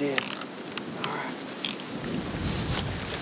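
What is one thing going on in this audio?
A man pushes through dry brush, twigs snapping and rustling.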